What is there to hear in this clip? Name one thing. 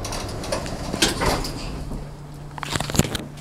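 A metal gate clanks.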